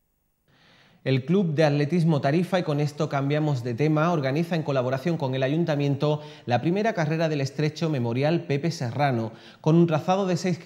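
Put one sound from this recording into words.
A young man speaks clearly into a close microphone, like a news presenter.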